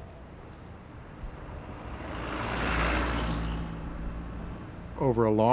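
A bus drives past close by, its engine rumbling and fading.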